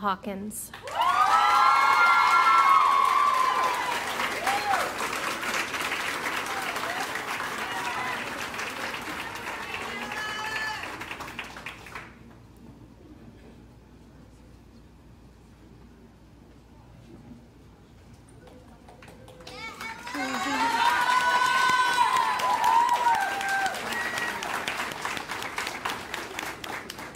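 An audience claps and applauds in a large echoing hall.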